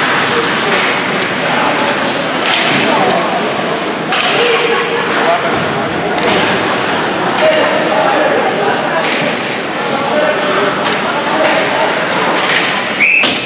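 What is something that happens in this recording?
A crowd murmurs and calls out in a large echoing rink.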